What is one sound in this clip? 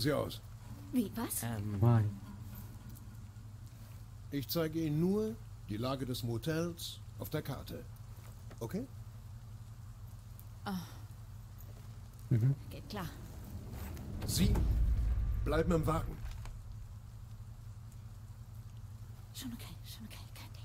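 A young woman speaks quietly and tensely.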